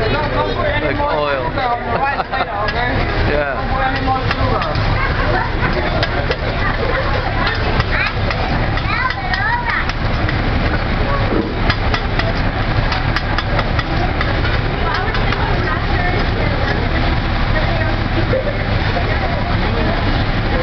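Food sizzles on a hot griddle.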